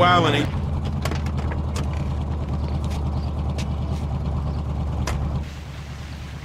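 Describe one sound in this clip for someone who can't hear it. A car engine idles with a low steady rumble.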